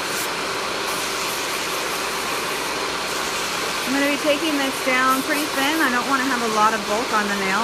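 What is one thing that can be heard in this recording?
An electric nail drill whirs steadily as it files a fingernail.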